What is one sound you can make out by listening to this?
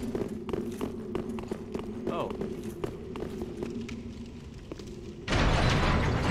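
Armoured footsteps clank on stone.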